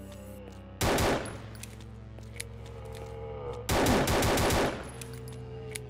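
A pistol fires a rapid burst of loud shots.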